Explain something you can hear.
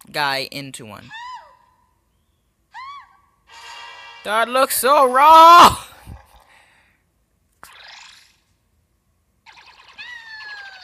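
Video game sound effects chirp with quick sliding tones.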